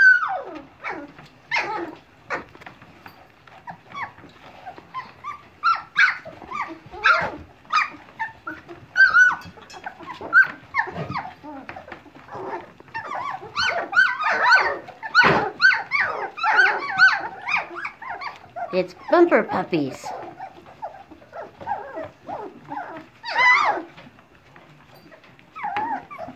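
Puppies squeal and whimper in high, short cries throughout.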